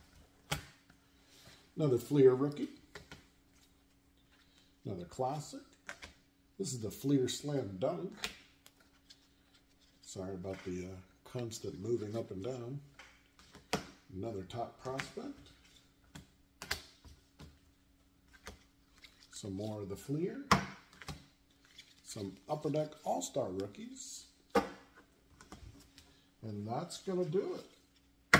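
Trading cards flick and slap softly as a man shuffles through them.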